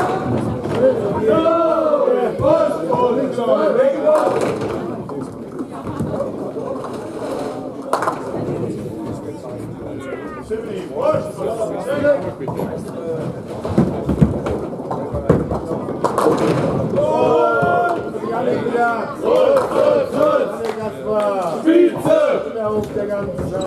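Men talk nearby in an echoing hall.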